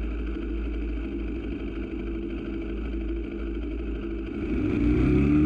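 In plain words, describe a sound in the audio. A motorcycle engine idles with a low rumble.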